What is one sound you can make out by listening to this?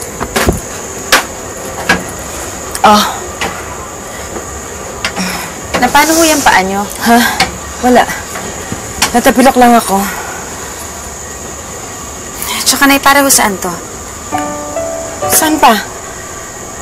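A young woman answers in a tense voice, close by.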